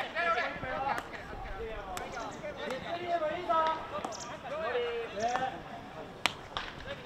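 A hockey stick strikes a ball with sharp cracks.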